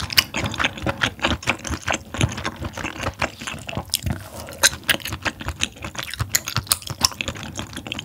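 A young woman chews food with wet, crunchy sounds close to a microphone.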